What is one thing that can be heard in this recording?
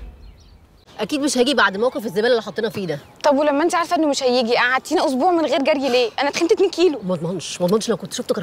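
A young woman talks with animation outdoors.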